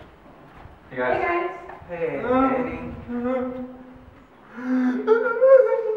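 A young man shouts excitedly close by.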